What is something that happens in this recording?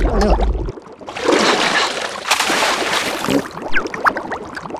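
A cartoon creature screams in a shrill voice.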